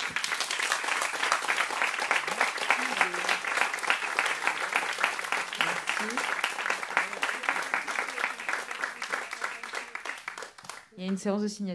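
An audience claps loudly in an echoing hall.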